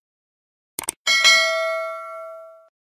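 A small bell rings brightly and slowly fades.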